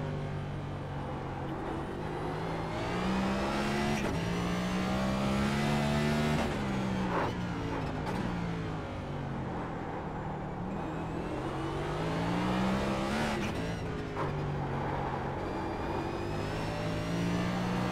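A racing car engine roars, rising and falling in pitch as it shifts gears through corners.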